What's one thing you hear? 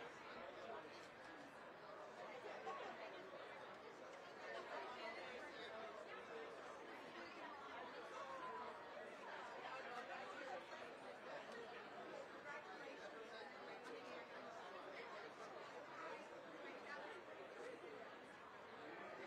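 A crowd of spectators murmurs and chatters.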